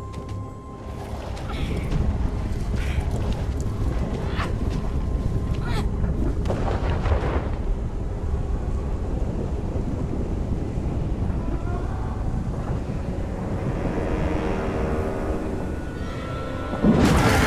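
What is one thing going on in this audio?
A dark swirling mass rumbles and roars.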